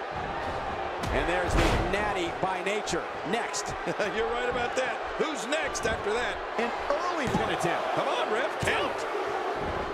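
Bodies slam hard onto a wrestling ring mat with loud thuds.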